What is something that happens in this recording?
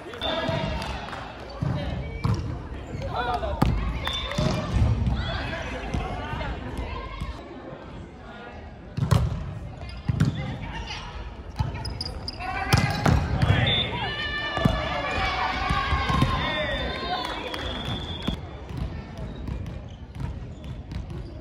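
Young men and women call out and shout to each other in a large echoing hall.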